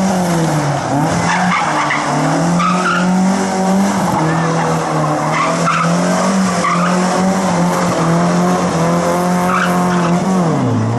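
Tyres squeal on cobblestones as a car drifts.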